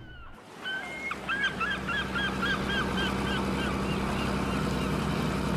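A seagull cries overhead.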